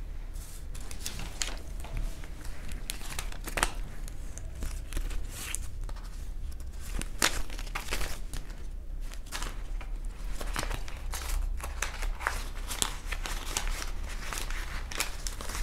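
Plastic sleeves crinkle and rustle close by.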